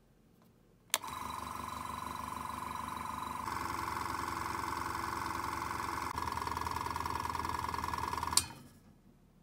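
An air compressor motor hums and rattles loudly and steadily, then stops.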